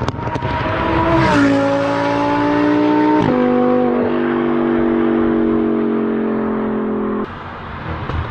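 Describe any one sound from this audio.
A sports car engine roars loudly, dropping in pitch with each gear change.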